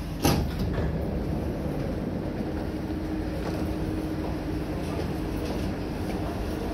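A train hums and rumbles steadily while standing at a platform.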